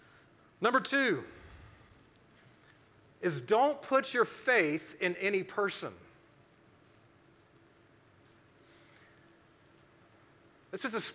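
A man speaks with animation through a microphone in a room with a slight echo.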